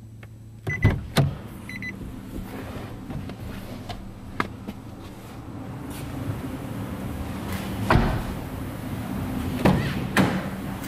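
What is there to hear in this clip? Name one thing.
A car door handle clicks as it is pulled.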